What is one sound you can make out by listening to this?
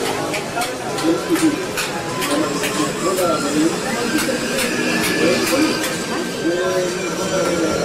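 A chisel scrapes and chips at wood.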